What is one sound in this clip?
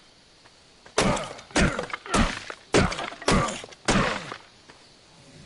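A fist punches a tree trunk with heavy thuds, again and again.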